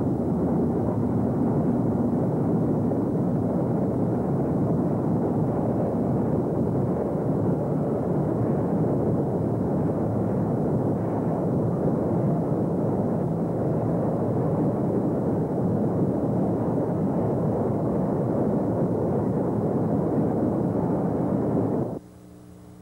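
A train rumbles steadily across a steel bridge.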